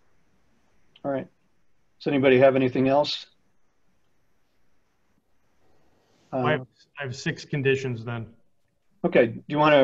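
An older man speaks calmly over an online call, in short bursts with pauses.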